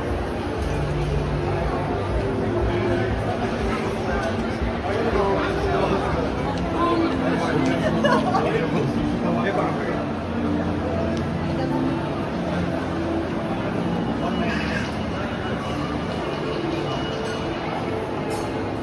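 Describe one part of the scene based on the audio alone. Many voices murmur and chatter in a large echoing indoor hall.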